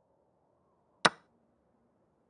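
A chess piece lands on the board with a sharp click.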